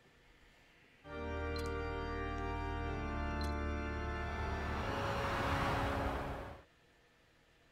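Game music swells with a bright chord and a rushing whoosh.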